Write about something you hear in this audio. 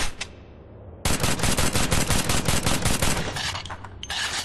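A silenced pistol fires a rapid burst of muffled shots.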